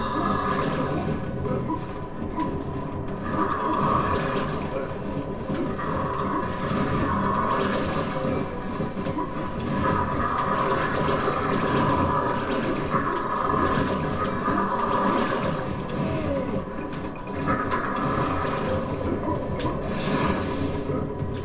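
Video game sound effects whoosh and zap during fighting.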